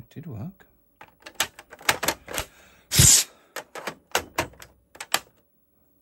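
A console's switch clicks as it is pressed.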